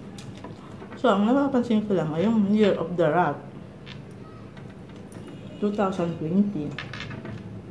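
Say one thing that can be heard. A woman speaks calmly and close by.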